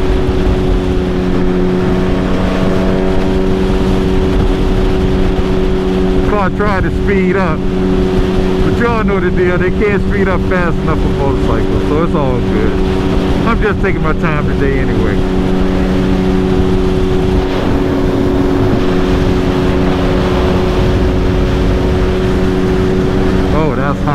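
An inline-four sportbike engine hums while cruising at highway speed.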